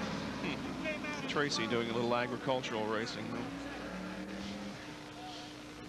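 A race car engine revs loudly and roars away.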